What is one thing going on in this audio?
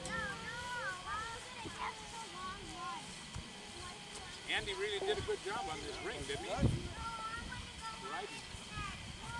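A young girl talks nearby with animation.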